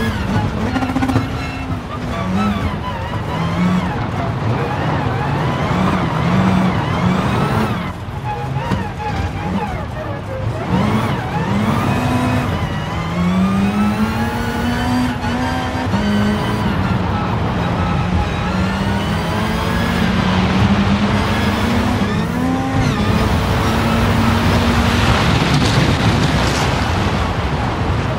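Tyres skid and crunch over loose gravel.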